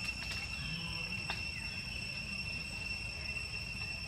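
A monkey chews food with soft smacking sounds.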